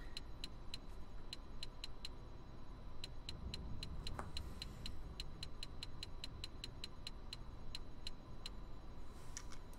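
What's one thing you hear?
Soft menu clicks tick in quick runs.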